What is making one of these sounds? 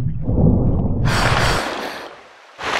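Water splashes as a swimmer breaks the surface.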